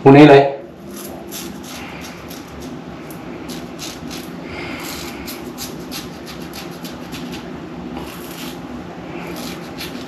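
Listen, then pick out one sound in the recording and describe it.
A razor scrapes over stubble in short strokes.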